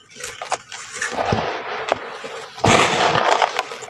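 Hands scrape and rub through loose dirt.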